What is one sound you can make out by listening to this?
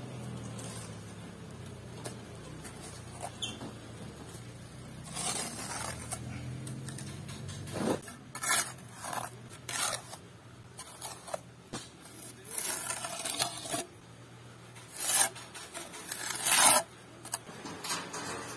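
A metal trowel scrapes and smooths wet mortar.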